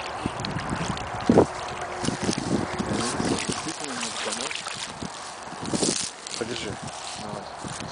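A large bird thrashes and splashes in shallow water.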